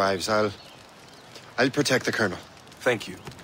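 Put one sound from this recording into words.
A young man speaks with urgency.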